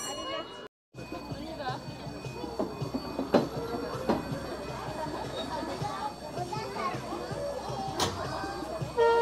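Cheerful fairground organ music plays from a turning carousel.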